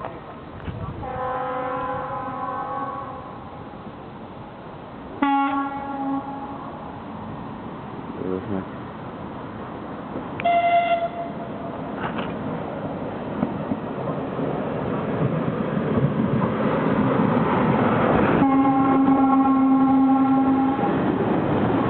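A train's horn sounds several times as the train comes closer.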